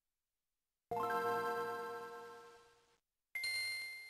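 A bright electronic startup chime rings out and slowly fades.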